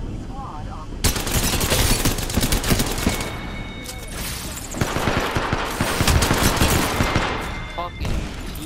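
A rifle fires rapid bursts of gunshots nearby.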